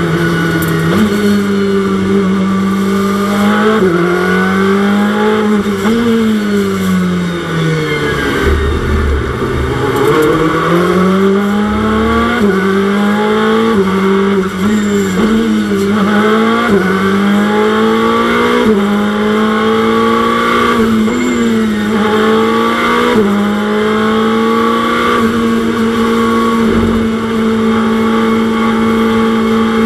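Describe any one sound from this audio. A racing car engine roars loudly, its pitch rising and falling as it shifts gears and slows for corners.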